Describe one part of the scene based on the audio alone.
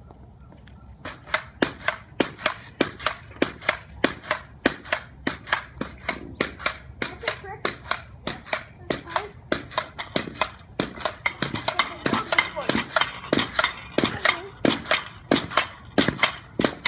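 Pogo sticks thump and squeak rhythmically on pavement, outdoors.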